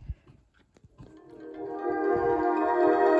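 Music plays through small laptop speakers and slowly grows louder.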